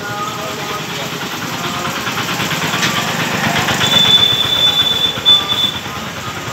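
Motorbike engines rumble past.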